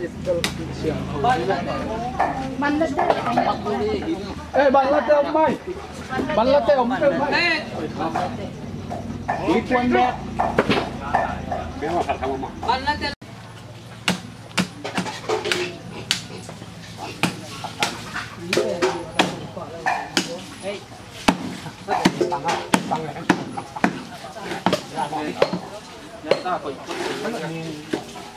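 A knife cuts and scrapes through meat.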